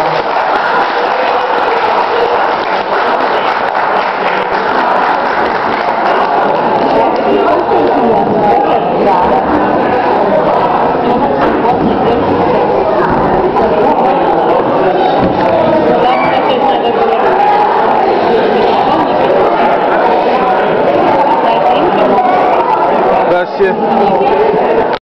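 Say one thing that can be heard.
A crowd of people chatter throughout a room with some echo.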